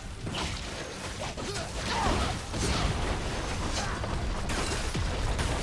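Sharp hits and zaps crackle repeatedly.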